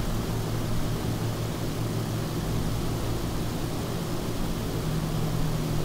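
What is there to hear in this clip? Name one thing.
Propeller engines drone steadily and loudly.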